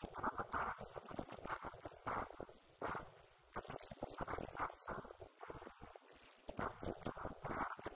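A young woman speaks through a microphone and loudspeaker in a large echoing hall.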